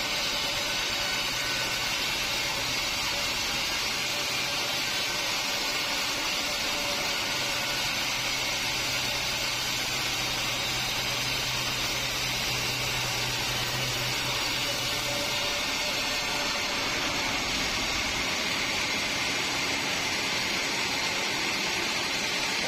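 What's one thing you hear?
A band saw rips steadily through a large log, with a loud, harsh whine.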